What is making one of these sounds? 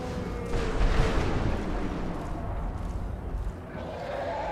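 Thunder cracks and rumbles loudly nearby.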